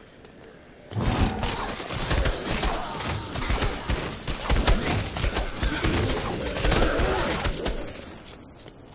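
Blows thud and smack into bodies in a dense, loud flurry.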